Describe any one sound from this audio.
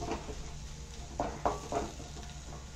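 A spatula scrapes against an iron pan.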